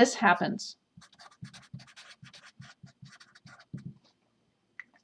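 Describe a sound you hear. A marker squeaks and scratches across paper in short strokes.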